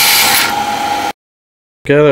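A metal lathe turns a steel part.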